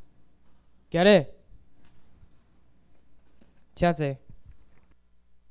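A man calls out loudly over a loudspeaker in an echoing hall.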